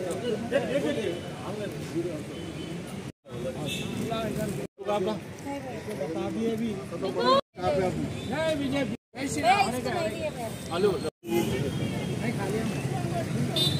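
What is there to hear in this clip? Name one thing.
A crowd of men and women chatter and call out close by.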